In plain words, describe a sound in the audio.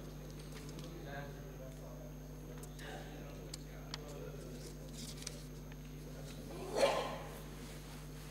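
Men murmur quietly in a large echoing hall.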